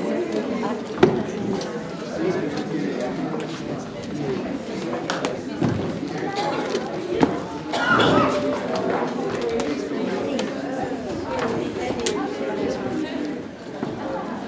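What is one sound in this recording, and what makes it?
A crowd of elderly men and women chatters all around.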